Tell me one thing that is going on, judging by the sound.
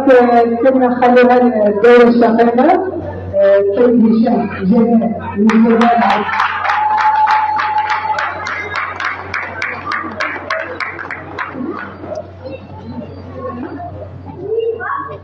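A crowd murmurs and talks in a large echoing hall.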